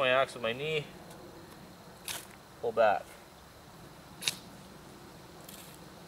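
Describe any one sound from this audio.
A knife scrapes and shaves wood.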